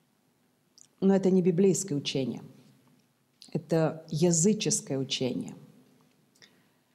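A middle-aged woman reads aloud calmly, close to a microphone.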